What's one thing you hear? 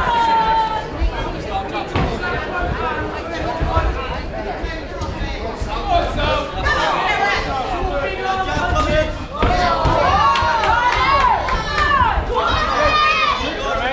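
Boxing gloves thud against a boxer's body and head.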